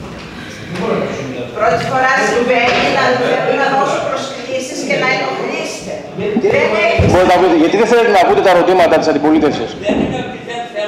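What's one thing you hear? Several men talk over one another.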